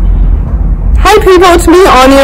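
A young woman speaks calmly close to the microphone.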